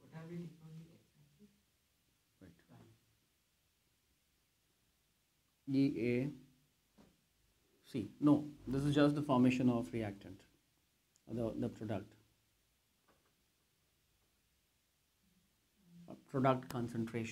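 A man speaks calmly, explaining in pauses, close by.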